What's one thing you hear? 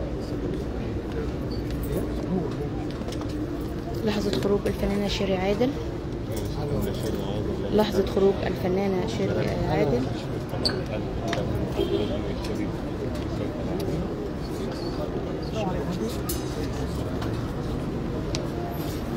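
A crowd of people murmurs and chatters nearby outdoors.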